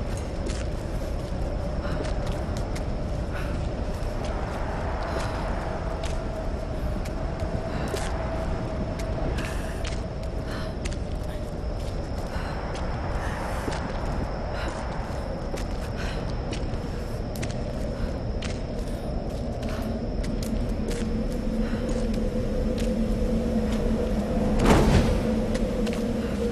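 A torch flame crackles and hisses.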